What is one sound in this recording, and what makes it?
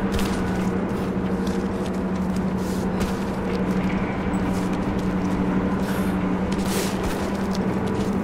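Hands scrape and thud against rough stone while climbing.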